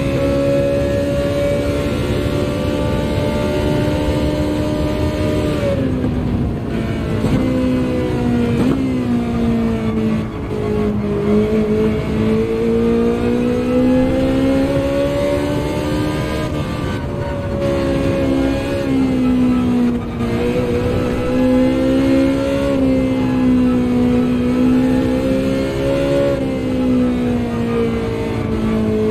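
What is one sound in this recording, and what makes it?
A racing car engine roars, its pitch dropping when slowing for corners and climbing again as it speeds up.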